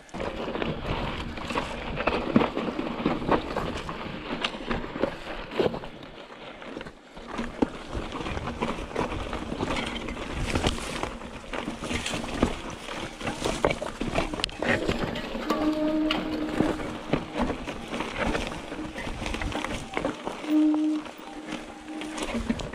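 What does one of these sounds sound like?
A bicycle frame and chain rattle with each bump.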